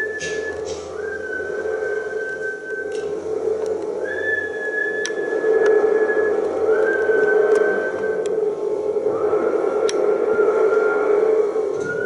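A woman sings long, held notes through a microphone.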